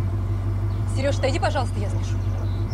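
A young woman speaks briefly in surprise, close by.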